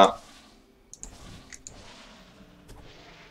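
Soft hits and clashes of a fight sound in a game.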